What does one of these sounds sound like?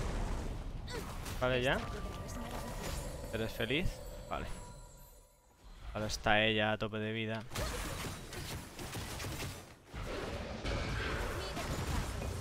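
Game sound effects of spells and clashing weapons play throughout.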